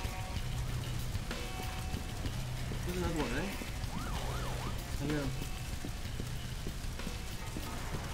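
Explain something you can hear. Flames roar and crackle nearby.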